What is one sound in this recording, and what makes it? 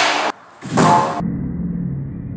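A long metal beam crashes onto a concrete floor and clangs in a large echoing hall.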